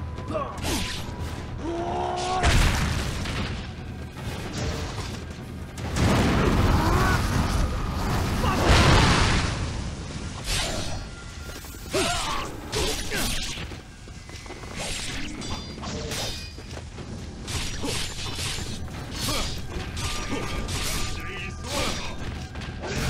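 Swords clash and slash in quick, repeated metallic hits.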